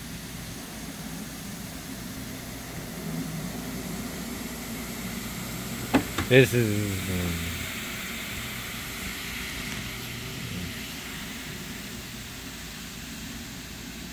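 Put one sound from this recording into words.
A floor scrubbing machine hums steadily as its brush whirs over a wet rug.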